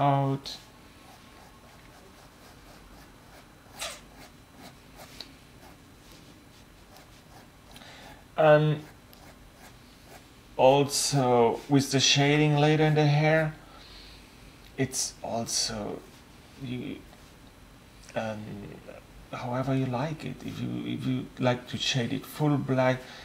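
A marker pen scratches and squeaks across paper.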